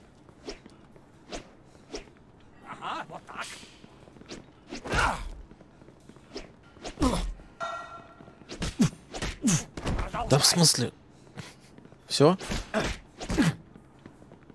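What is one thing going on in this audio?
Fists thud in heavy punches.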